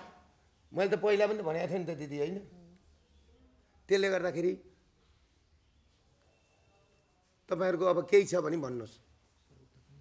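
A middle-aged man speaks firmly in short bursts, close by.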